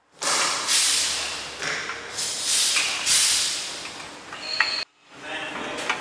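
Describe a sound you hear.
A hand tool scrapes and clicks against metal as a bolt is tightened.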